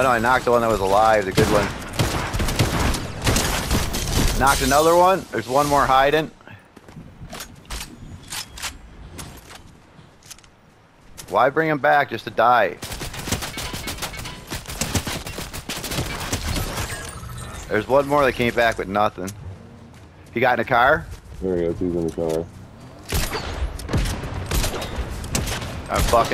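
Gunfire from a game rattles in quick bursts.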